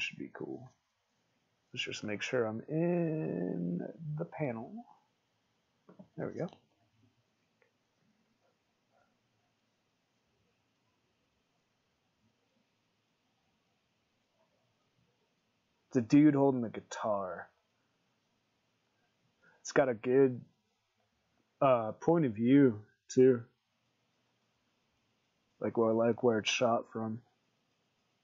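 A man talks calmly and casually into a nearby microphone.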